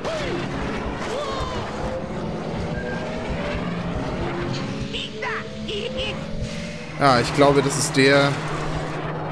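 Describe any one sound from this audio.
A racing engine roars and whines steadily at high speed.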